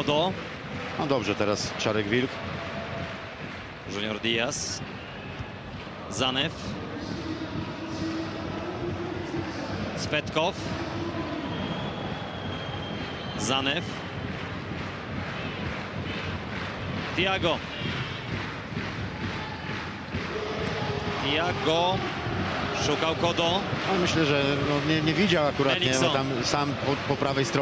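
A large stadium crowd roars and chants steadily in the open air.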